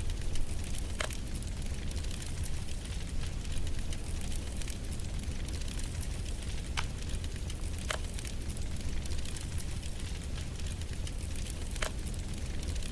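Short soft chimes sound as tiles snap into place in a puzzle game.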